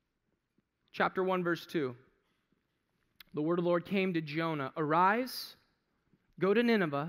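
A man speaks with feeling through a headset microphone, in short bursts with pauses.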